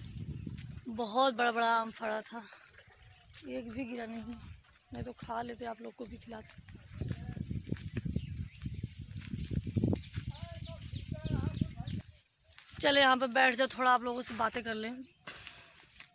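A young woman talks calmly and close to the microphone.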